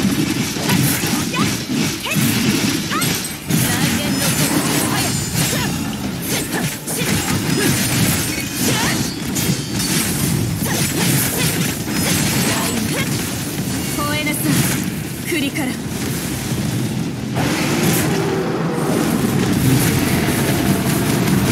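Blades slash and clash in quick strikes.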